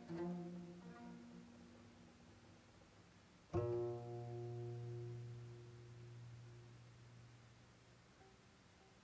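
A plucked zither rings out single notes, each slowly fading.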